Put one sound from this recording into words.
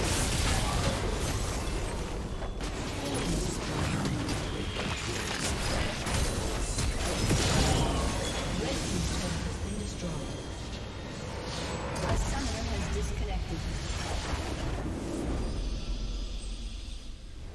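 Explosions, clashing weapons and magical blasts crackle in a busy fantasy battle.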